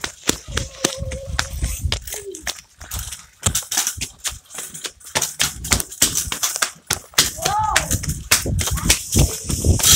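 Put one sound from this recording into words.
Scooter wheels roll and rattle over pavement.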